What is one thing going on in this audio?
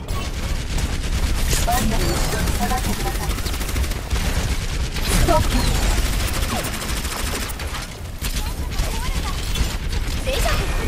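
A game weapon fires rapid energy shots.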